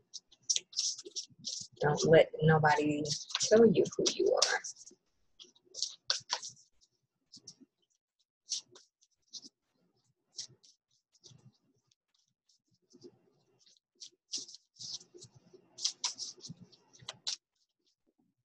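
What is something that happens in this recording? Cards shuffle and rustle in a pair of hands.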